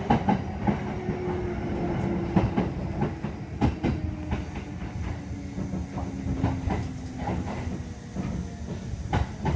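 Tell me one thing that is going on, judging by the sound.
Train brakes whine as the train slows.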